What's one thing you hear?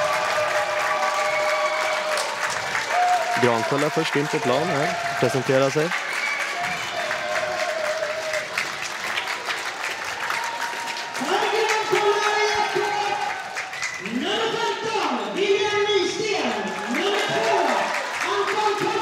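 A crowd claps in a large echoing hall.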